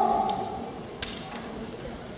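Bamboo swords clack sharply against each other.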